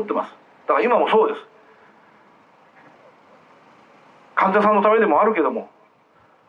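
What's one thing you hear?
A middle-aged man speaks loudly into a microphone in short bursts, heard through a loudspeaker outdoors.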